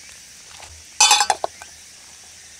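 A metal lid clatters down onto a pot.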